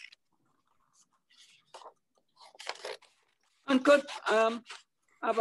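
A knife scrapes across paper.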